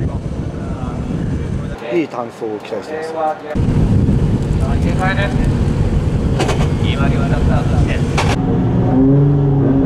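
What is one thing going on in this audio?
Car engines rumble and idle nearby.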